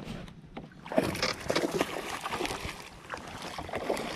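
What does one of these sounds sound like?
Water splashes and gurgles around a small boat's hull as it moves.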